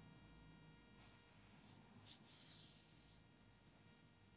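Yarn rustles softly as it is pulled through a crocheted piece.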